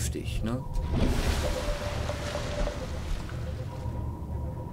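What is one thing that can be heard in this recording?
Water splashes and hisses as a craft surfaces.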